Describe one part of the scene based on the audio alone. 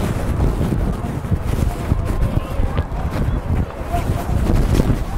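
Wind rumbles across an open field.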